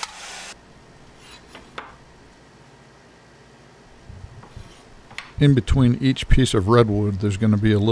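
A utility knife scratches as it scores wood.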